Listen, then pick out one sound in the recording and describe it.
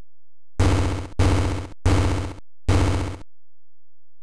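A retro video game plays four short, buzzy electronic blasts in quick succession.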